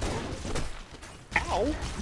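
Plasma shots from a game crackle and whine.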